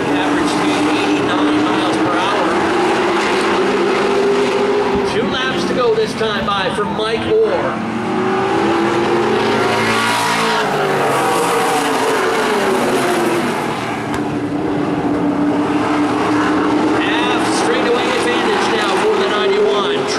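Race car engines roar and whine as the cars circle the track.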